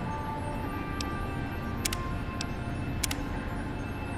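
Menu selections click sharply a few times.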